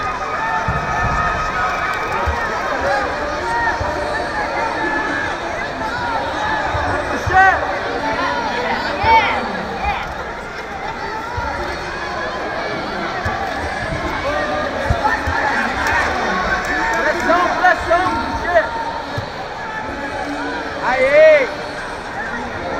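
A large crowd murmurs and shouts in a big echoing hall.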